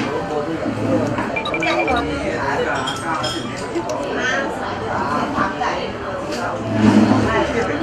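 Chopsticks clink on a plate.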